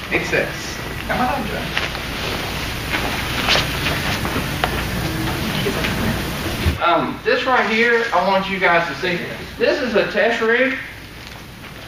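A man speaks clearly and calmly nearby.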